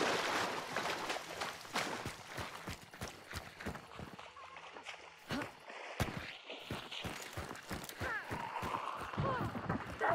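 Footsteps crunch through undergrowth.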